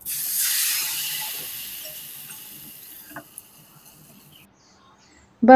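Food sizzles in a hot pan and slowly fades.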